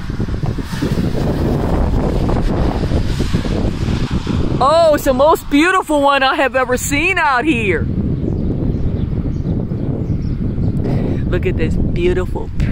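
Wind gusts and rumbles across the microphone outdoors.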